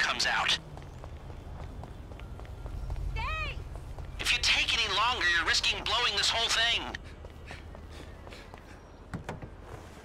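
Footsteps run on pavement.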